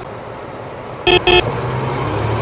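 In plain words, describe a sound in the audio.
A bus horn honks twice in short bursts.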